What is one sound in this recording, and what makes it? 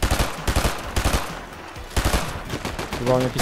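Rapid gunshots pop from a video game.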